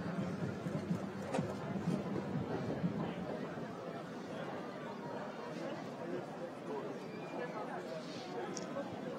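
A horse's hooves thud on soft ground at a gallop.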